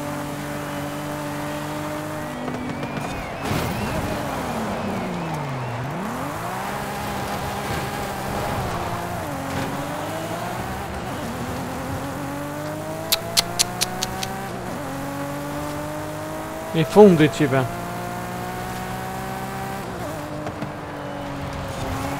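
A racing car engine roars, dropping low through a slow drifting turn and then revving up again as it speeds along.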